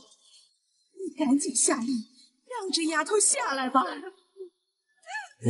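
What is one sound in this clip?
A middle-aged woman speaks sternly up close.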